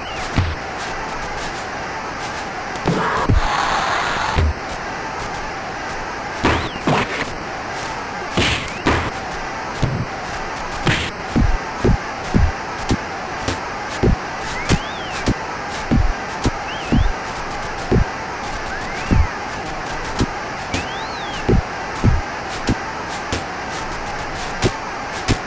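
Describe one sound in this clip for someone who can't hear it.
Punches thud repeatedly in a boxing video game.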